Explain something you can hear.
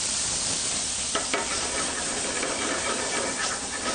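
Flames flare up with a whoosh.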